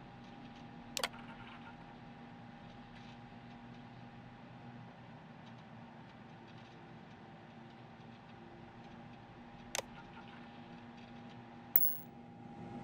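A computer interface clicks sharply as options are selected.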